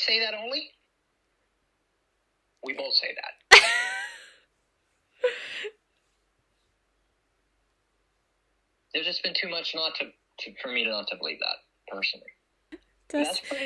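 A woman talks warmly over an online call.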